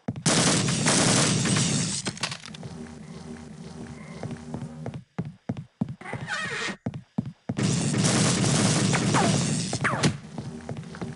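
A weapon fires with a crackling electric zap.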